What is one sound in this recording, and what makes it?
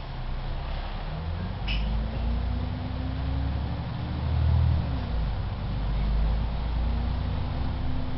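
A bus engine revs up as the bus pulls away.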